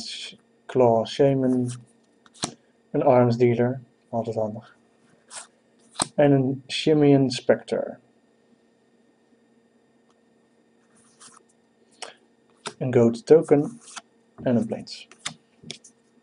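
Playing cards slide and flick against each other in hands.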